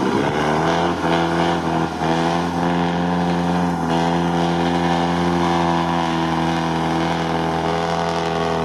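A truck engine roars steadily under load.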